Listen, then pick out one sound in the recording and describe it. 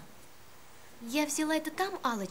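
A young woman answers with animation, close by.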